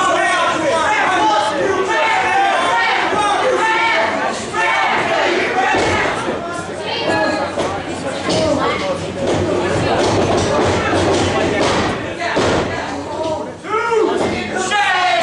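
A crowd of spectators shouts and cheers in an echoing indoor hall.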